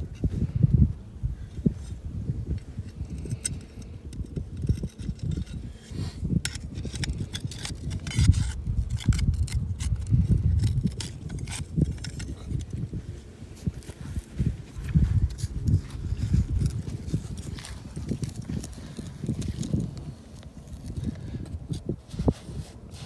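Hands scrape and scoop dry sand.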